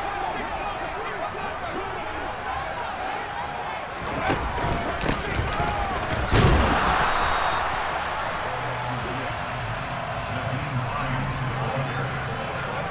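A stadium crowd roars steadily throughout.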